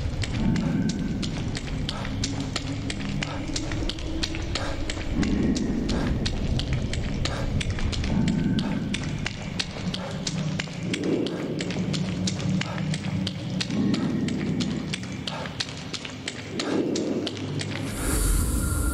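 Footsteps splash through shallow water at a quick pace.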